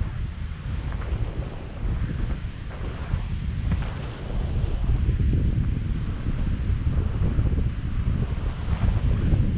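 A man speaks close by, half drowned by the wind.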